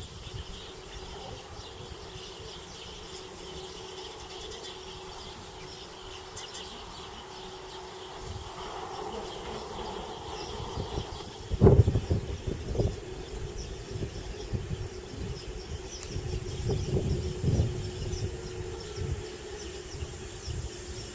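A high-speed train approaches with a rising rumble.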